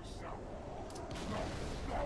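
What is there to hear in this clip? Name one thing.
A rifle fires a burst of shots.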